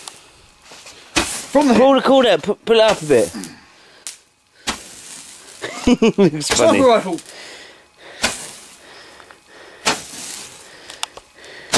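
Fireworks crackle and hiss as they shoot out sparks.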